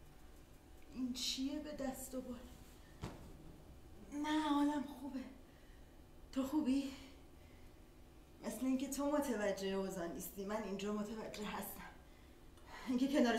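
A woman sings slowly.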